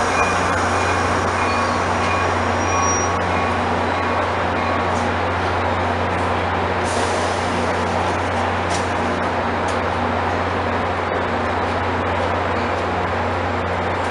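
Footsteps shuffle on a platform as passengers walk by.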